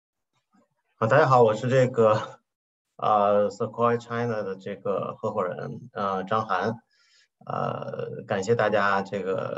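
A man speaks calmly into a microphone, heard as if through an online call.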